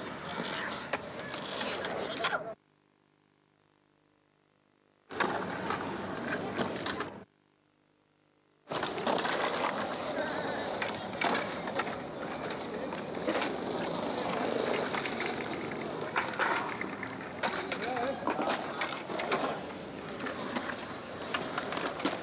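A skateboard clacks sharply against the ground.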